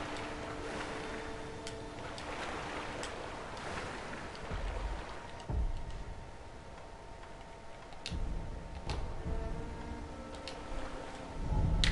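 Water sloshes and splashes as a swimmer moves through it.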